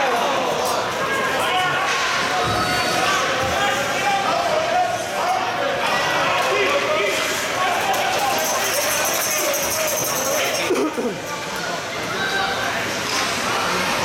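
A crowd of spectators chatters and calls out in an echoing rink.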